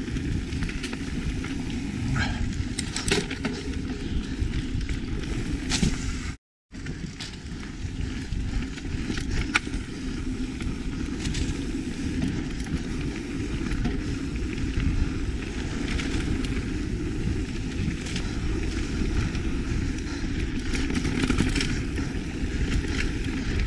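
Bicycle tyres roll over a bumpy dirt trail.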